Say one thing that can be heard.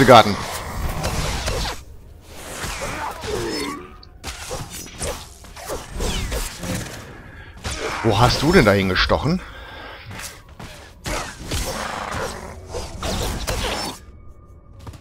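Blades clash and hum in a fast fight.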